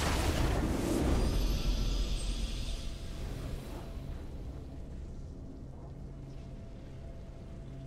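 A game's victory fanfare rings out.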